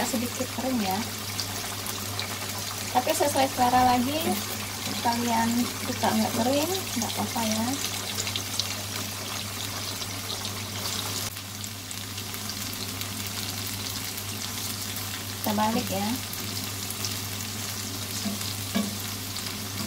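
A metal spatula scrapes and turns tofu in a frying pan.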